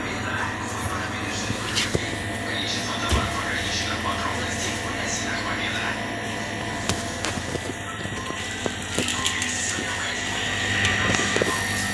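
A refrigeration machine hums and whines steadily close by.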